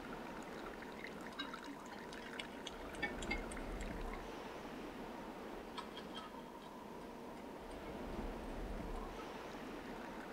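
Water splashes in a tub.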